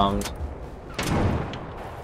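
Heavy gunfire booms.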